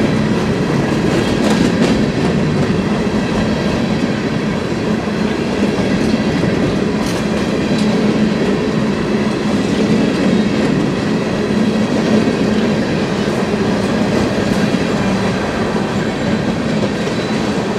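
A crossing bell rings rapidly and steadily.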